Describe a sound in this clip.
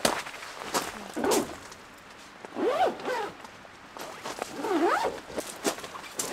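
A zipper is pulled along a tent door.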